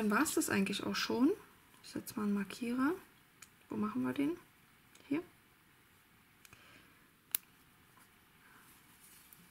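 Crocheted yarn rustles softly as hands handle it.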